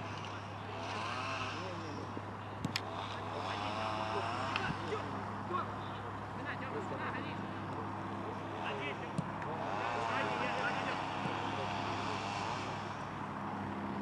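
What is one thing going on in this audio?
Young men shout to each other from a distance outdoors.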